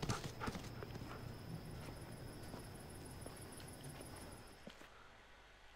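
Footsteps crunch through grass and brush.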